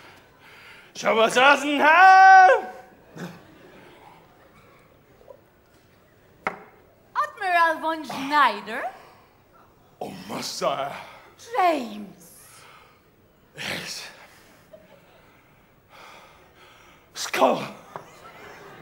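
An elderly man exclaims and sings out loudly in a theatrical voice, echoing in a large hall.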